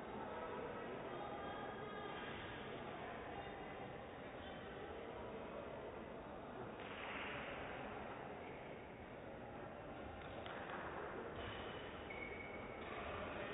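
Spectators murmur and chatter in a large echoing hall.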